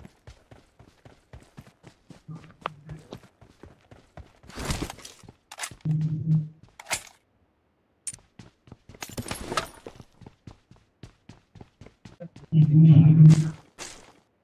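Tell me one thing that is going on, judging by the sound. Footsteps patter quickly on the ground and floors.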